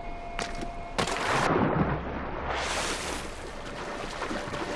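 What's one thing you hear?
Water splashes loudly as a body plunges in.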